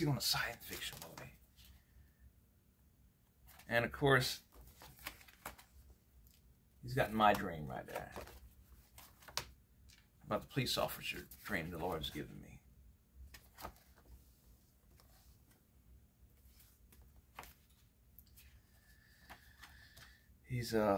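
A man talks calmly and close up, in short bursts with pauses.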